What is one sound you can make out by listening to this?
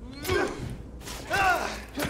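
Blows land in a scuffle, with sharp thuds.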